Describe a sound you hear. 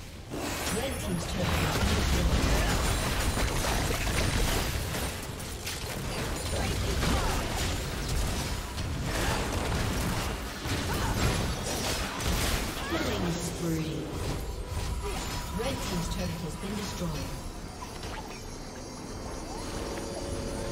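Video game combat effects crackle and clash with rapid bursts.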